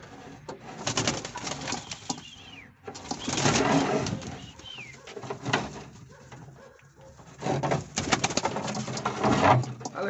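A pigeon flaps its wings close by.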